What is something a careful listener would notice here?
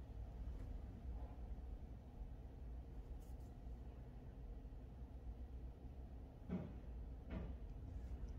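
A small tool taps lightly on a fingernail.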